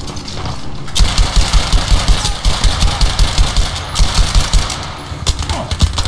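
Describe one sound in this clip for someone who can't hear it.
A rifle fires rapid shots in quick succession.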